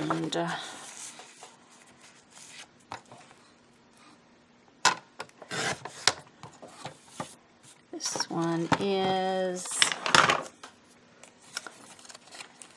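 Card stock rustles and scrapes as it is handled.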